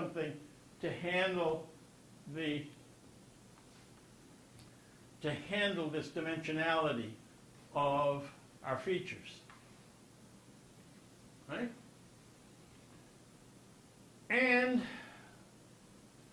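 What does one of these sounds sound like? An elderly man speaks calmly and haltingly through a microphone.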